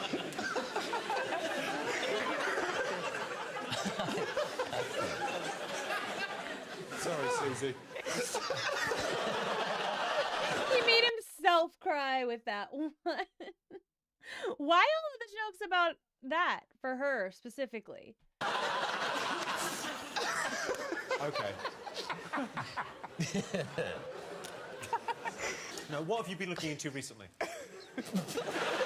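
A studio audience laughs loudly.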